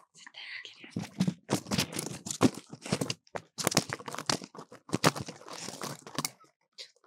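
A straw broom brushes and rustles right against a microphone.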